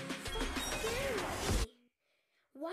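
Fighting sound effects crackle and whoosh from a video game.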